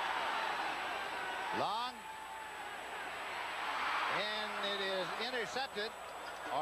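A large crowd roars in a stadium.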